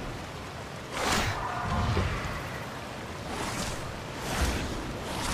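A large creature snorts and growls in short bursts.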